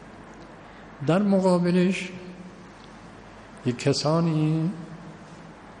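An elderly man speaks slowly and calmly into a microphone, with echo.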